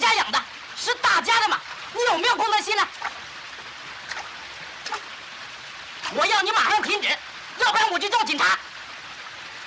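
A man speaks loudly nearby.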